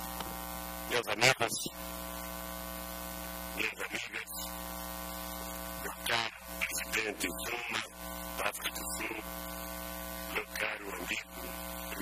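Men talk quietly nearby in short bursts.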